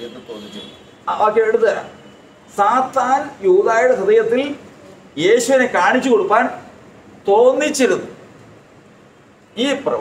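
An elderly man speaks with animation close by.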